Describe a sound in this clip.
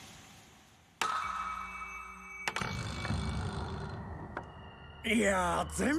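A small ball bounces on a hard surface.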